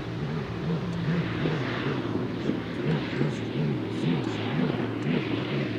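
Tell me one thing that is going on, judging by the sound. Water sprays and hisses behind a speeding boat.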